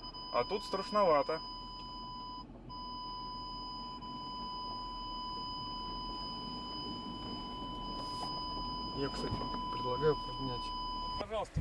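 A man talks calmly close by inside a car.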